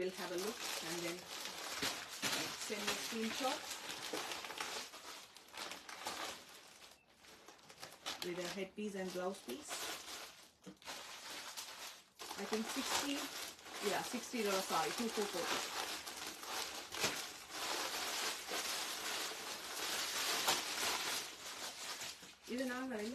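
Cloth and a plastic wrapper rustle and crinkle.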